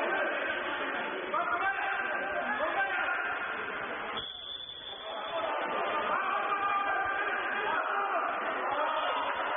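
A crowd of men shouts and cheers in an echoing hall.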